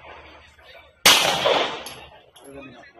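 A pistol fires a single shot outdoors, and the report echoes away.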